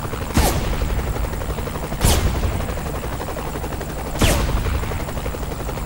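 A sniper rifle fires loud booming shots that echo away.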